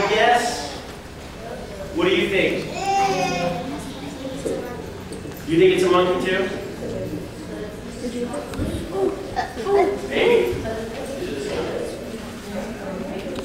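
A middle-aged man speaks with animation to a group.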